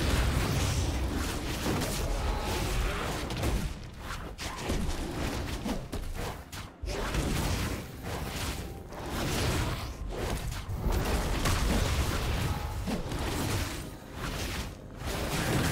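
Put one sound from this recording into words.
Fantasy fighters clash with thuds and magical blasts in a game.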